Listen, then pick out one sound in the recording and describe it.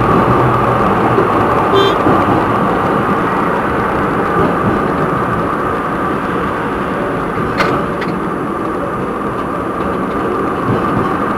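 A tram rumbles steadily along the rails.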